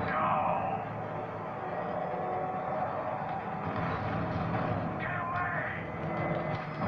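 A racing game's car engine roars and revs loudly through a television speaker.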